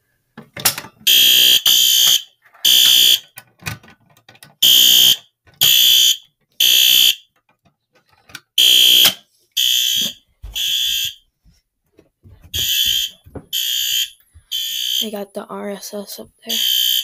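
A fire alarm blares in loud, repeated bursts.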